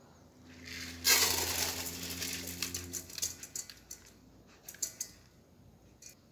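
Wet rice slides and clatters into a metal pot.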